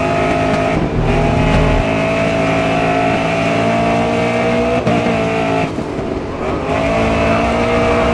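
A racing car engine roars at high revs, dipping briefly as it shifts gear.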